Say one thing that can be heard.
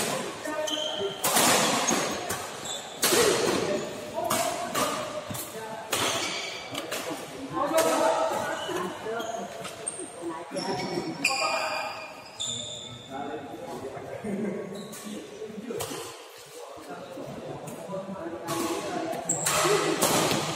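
Rackets smack a shuttlecock back and forth in a large echoing hall.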